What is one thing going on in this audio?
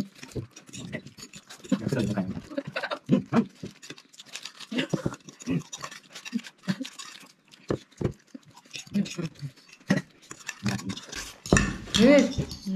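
Spoons scrape and clink on plates.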